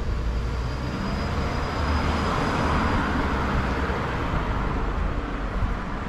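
A car drives slowly along the street, rising and fading as it passes.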